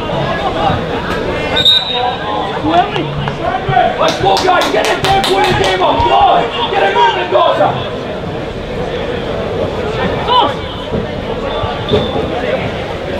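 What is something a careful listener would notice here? A crowd of spectators murmurs and calls out in the distance.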